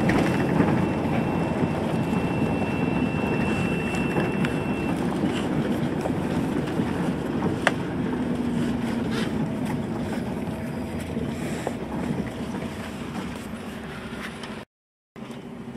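A vehicle's engine rumbles steadily, heard from inside as it drives along.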